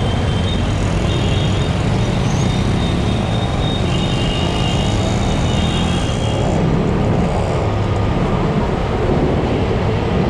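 A motorcycle engine rumbles steadily up close as it rides.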